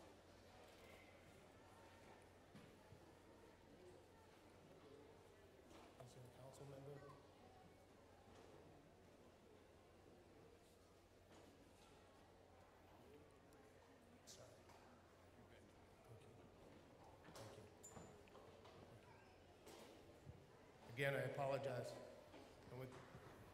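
A middle-aged man speaks through a microphone and loudspeaker in a large echoing hall.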